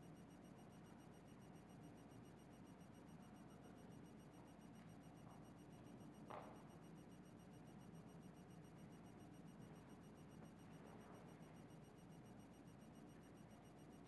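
Cloth rustles softly.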